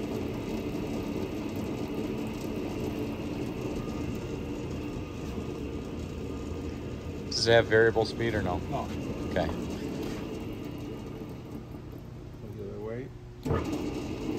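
A machine hums steadily nearby.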